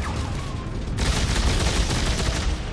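An energy weapon fires with an electric crackle.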